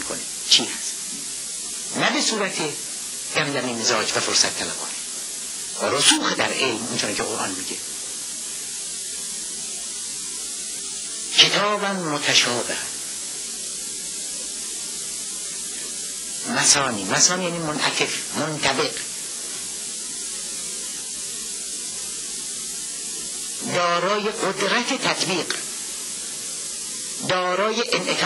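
A middle-aged man speaks with animation into a microphone, in bursts with long pauses.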